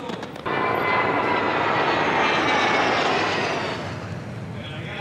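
Jet planes roar overhead, their pitch falling as they pass.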